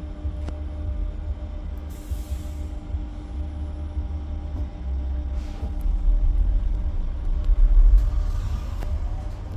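A bus engine rumbles low and steady while the bus drives.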